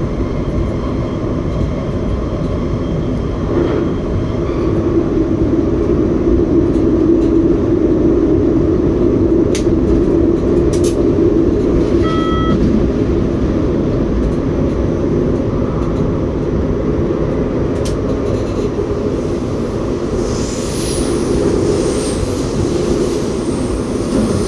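A train rumbles steadily along the tracks through a tunnel.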